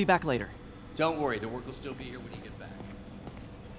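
An older man answers calmly.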